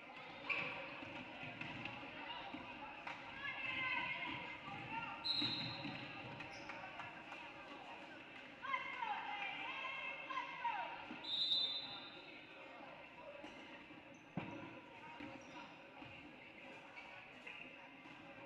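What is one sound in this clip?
A crowd cheers and calls out in a large echoing gym.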